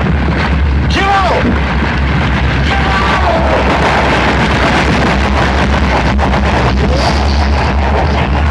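A loud explosion roars and rocks clatter down.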